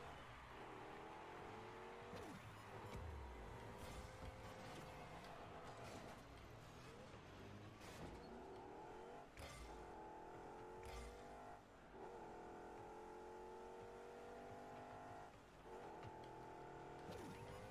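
A car engine drones and whines as it revs up and down.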